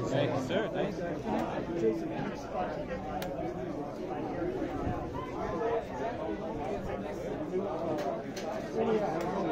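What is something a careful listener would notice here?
A crowd of men and women chatter throughout an indoor hall.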